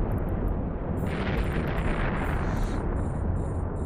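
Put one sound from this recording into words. A burst of crackling blasts roars briefly.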